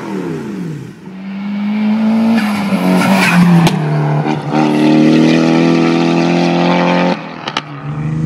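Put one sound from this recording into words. A sports car engine roars as it accelerates hard up through the gears.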